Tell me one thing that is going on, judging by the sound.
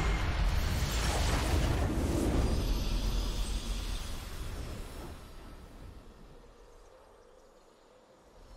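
A game's victory fanfare swells and slowly fades.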